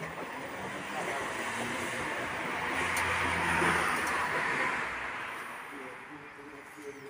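A car drives past in the distance, rising and then fading.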